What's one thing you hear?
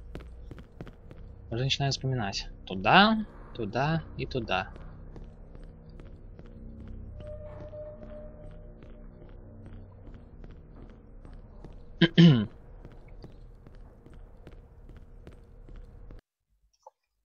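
Footsteps tap steadily on a hard tiled floor.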